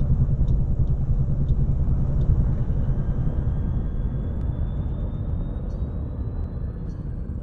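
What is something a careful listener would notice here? A spaceship engine rumbles low and steady, growing slightly quieter.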